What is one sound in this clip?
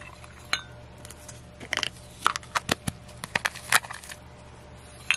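Fingernails tap and click on a small plastic container.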